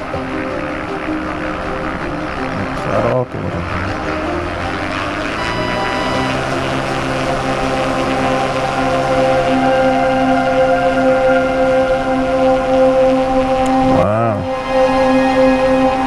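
Wind rushes past a small plane in flight.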